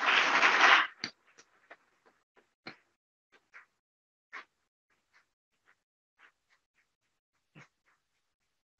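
Footsteps tap across a stage.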